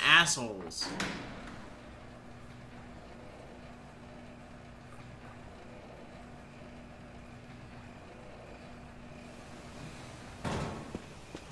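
A lift hums steadily as it slowly descends.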